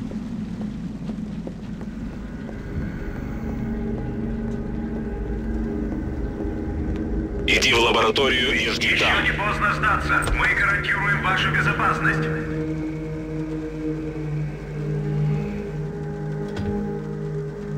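Footsteps walk steadily down stairs and across a hard floor.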